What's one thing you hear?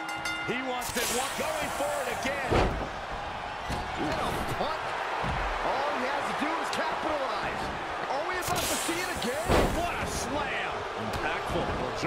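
Heavy thuds of wrestlers slamming onto a ring mat.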